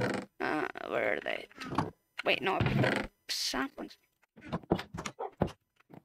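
A wooden chest creaks open and shut.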